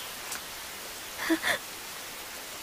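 A child speaks briefly.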